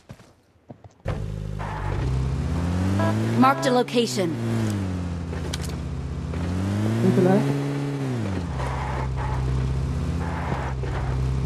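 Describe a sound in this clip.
A vehicle engine starts up and revs, rising and falling in pitch.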